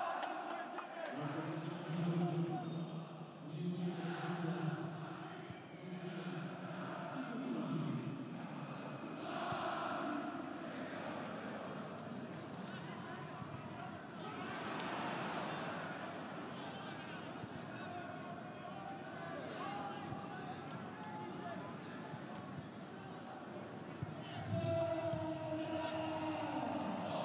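A large stadium crowd chants and cheers loudly throughout.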